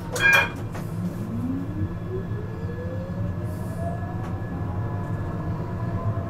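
A tram's electric motor whines and rises steadily in pitch as the tram pulls away.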